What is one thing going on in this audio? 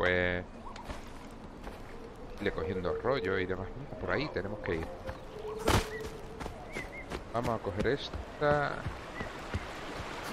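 Footsteps crunch through grass and over rock.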